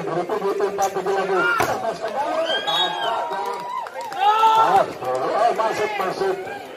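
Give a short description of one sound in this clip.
A large crowd of spectators cheers and shouts loudly.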